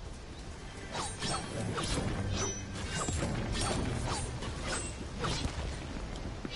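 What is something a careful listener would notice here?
A pickaxe strikes stone with sharp knocks.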